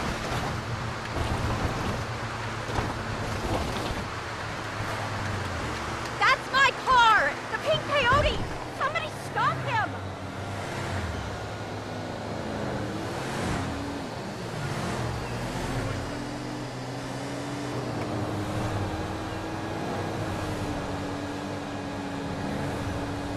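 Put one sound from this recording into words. A van engine hums steadily as it drives along a road.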